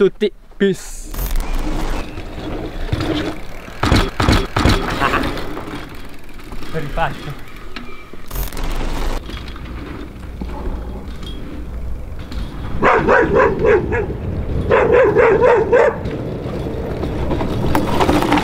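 Bicycle tyres roll and skid on dirt.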